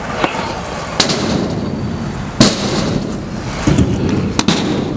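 Stunt scooter wheels roll with a rumble on a concrete ramp.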